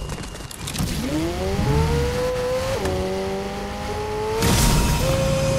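A car engine starts up and revs higher.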